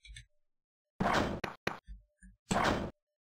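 Metal spikes in a video game shoot up with a harsh scraping burst.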